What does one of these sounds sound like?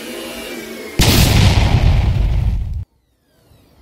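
A balloon bursts with a loud bang.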